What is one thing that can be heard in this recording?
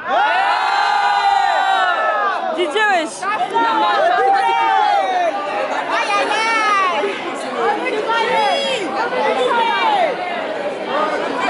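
A crowd of women cheer and shout excitedly close by.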